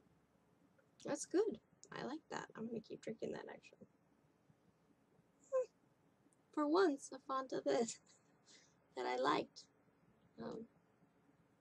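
A young woman talks casually and close by, in short bursts with pauses.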